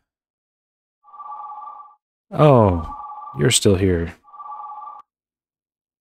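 A phone rings with a repeating electronic tone.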